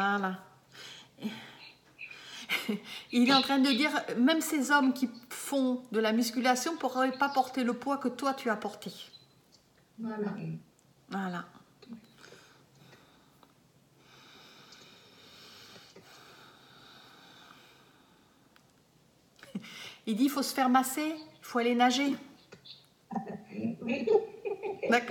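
A middle-aged woman talks with animation close to a microphone, pausing now and then.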